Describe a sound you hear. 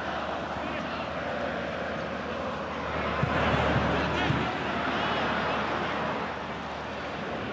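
A large stadium crowd murmurs and cheers steadily, swelling briefly.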